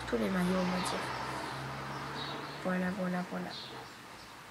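A young girl speaks close by, in a calm voice.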